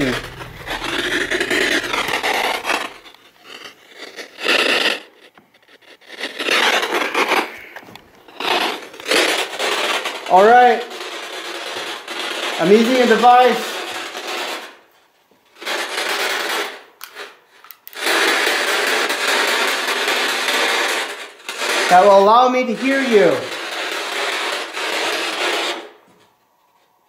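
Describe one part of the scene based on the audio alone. A radio scanner crackles with choppy bursts of static and broken fragments of sound through a small speaker.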